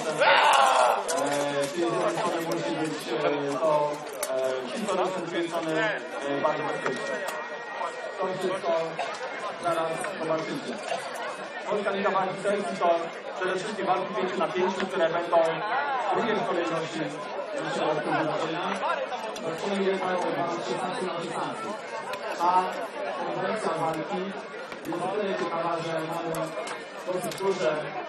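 A young man speaks with animation into a microphone, heard through a loudspeaker outdoors.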